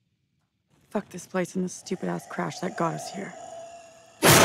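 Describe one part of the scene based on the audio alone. A young woman speaks close by in a low, tense voice.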